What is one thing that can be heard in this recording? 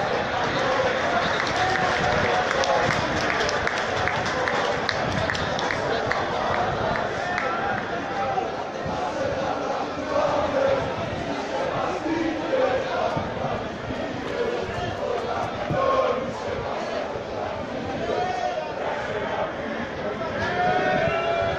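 A crowd of spectators chants and cheers loudly nearby, outdoors.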